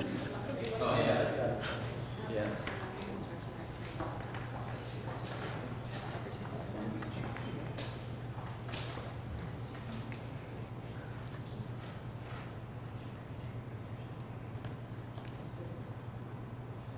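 A woman speaks calmly to a group in a large room.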